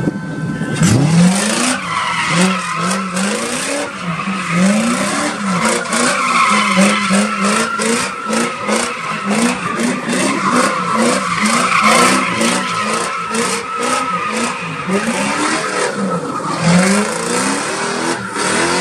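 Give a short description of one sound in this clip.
Tyres screech on asphalt as a car spins.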